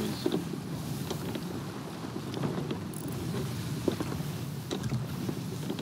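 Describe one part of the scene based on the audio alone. Wind gusts over open water.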